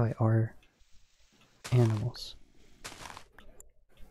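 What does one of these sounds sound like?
Dirt crunches as it is dug away in short blows.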